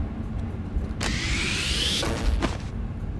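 A rising electronic whoosh sweeps upward and cuts off.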